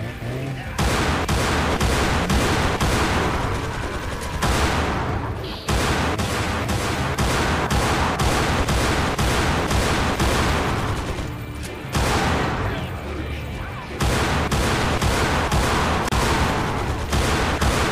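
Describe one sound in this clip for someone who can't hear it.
A pistol fires shot after shot.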